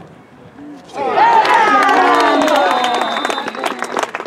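Young men cheer and yell loudly nearby.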